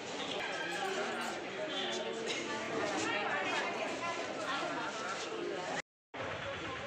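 A crowd of people chatter indoors.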